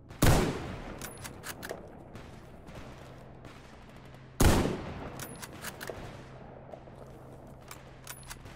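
A rifle bolt clicks and clacks as it is worked.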